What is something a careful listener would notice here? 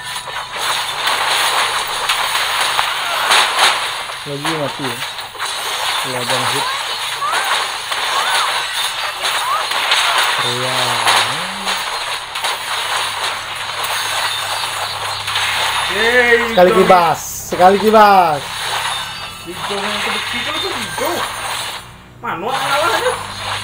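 Game battle effects clash and whoosh continuously.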